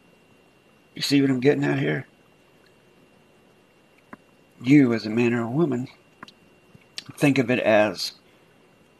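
A man speaks into a close microphone in short bursts.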